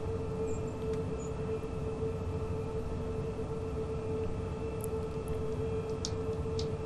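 An electric motor hums with a steady whine.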